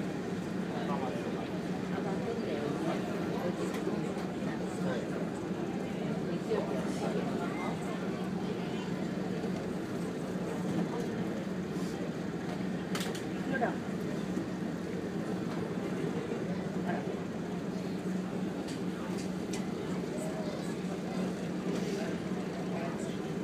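A ship's engine hums low and steady.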